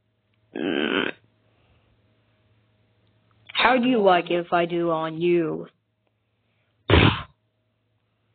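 A hand slaps someone with a loud smack.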